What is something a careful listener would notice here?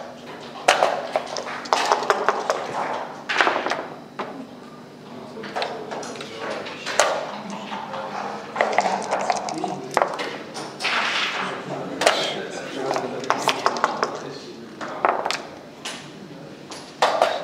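Dice clatter onto a board.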